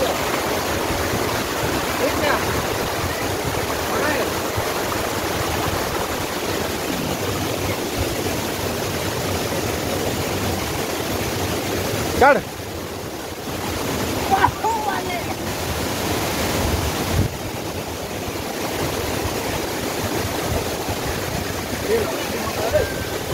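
Water rushes and splashes loudly over rocks outdoors.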